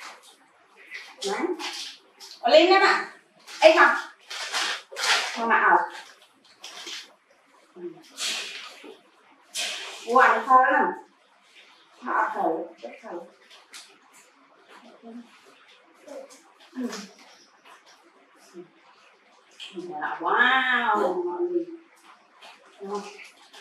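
A young woman talks softly and warmly nearby.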